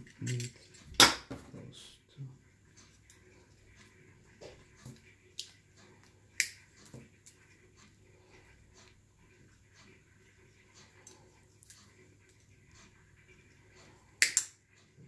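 Pliers snip with sharp clicks.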